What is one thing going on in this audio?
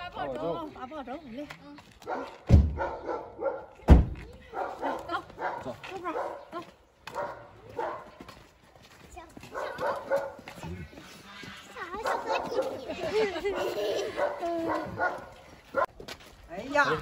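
A middle-aged woman talks cheerfully nearby.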